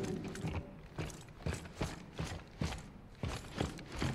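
Heavy boots clank steadily on a metal floor.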